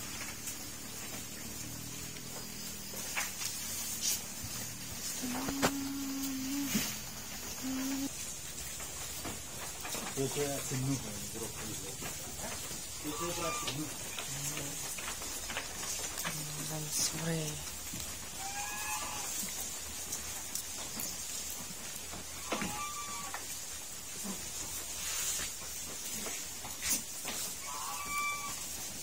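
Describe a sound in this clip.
Sheep munch and tear at fresh grass close by.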